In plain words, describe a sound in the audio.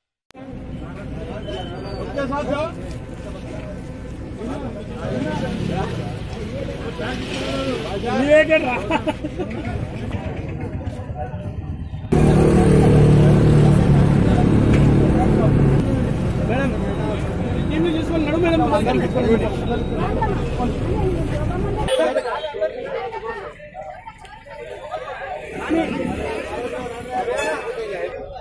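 A crowd of men talk loudly at once outdoors.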